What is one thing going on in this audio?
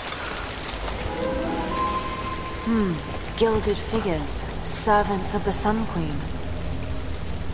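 A young woman murmurs softly to herself.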